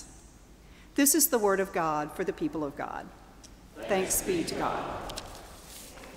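A woman sings through a microphone in a large echoing hall.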